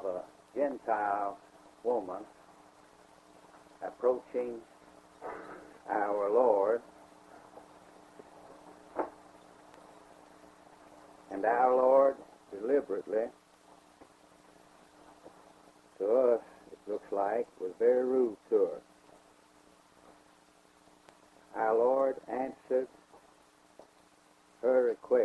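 An elderly man speaks slowly with long pauses, heard through an old, hissy recording.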